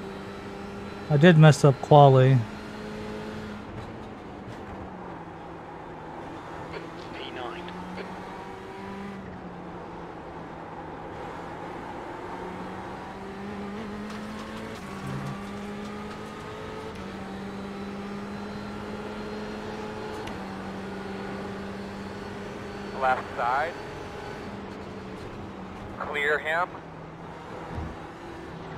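A racing car engine drones steadily, its pitch rising and falling with gear changes.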